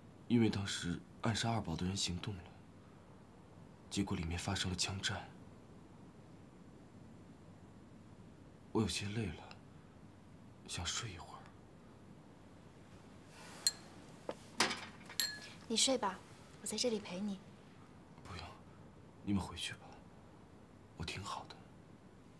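A young man speaks weakly and softly, close by.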